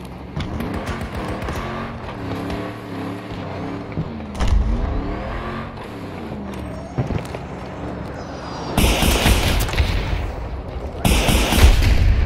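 An armoured vehicle's engine rumbles as it drives.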